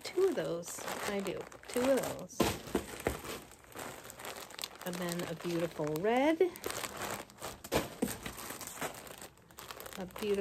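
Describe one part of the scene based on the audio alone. Plastic bags of yarn crinkle and rustle in a woman's hands.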